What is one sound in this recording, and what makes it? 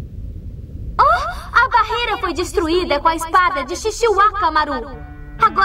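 A young girl cries out in alarm close by.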